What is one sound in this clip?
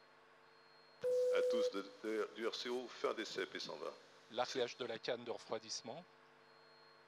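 A man speaks calmly over a loudspeaker in a large hall.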